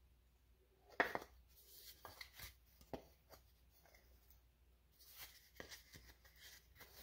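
Wooden pieces knock together softly.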